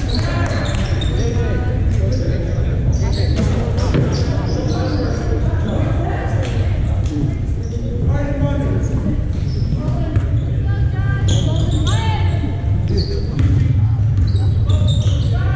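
A crowd of young people chatters in a large echoing hall.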